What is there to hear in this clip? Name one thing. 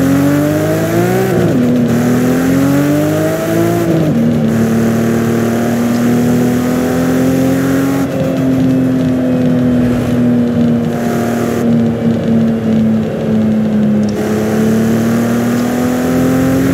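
Tyres hiss over a wet road.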